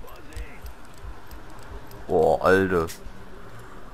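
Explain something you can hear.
A revolver's cylinder clicks as it is reloaded.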